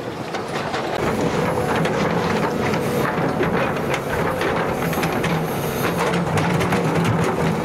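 An excavator bucket scrapes and clanks through earth and stones.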